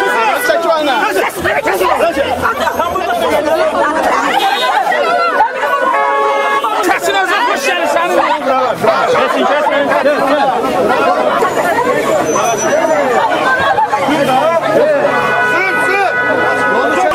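A crowd of men shout and argue close by outdoors.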